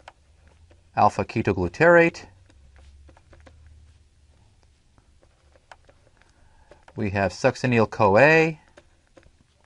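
A man speaks calmly through a microphone in short phrases.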